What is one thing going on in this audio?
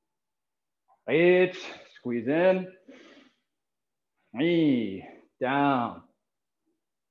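A man counts out loud in short, forceful calls, heard over an online call.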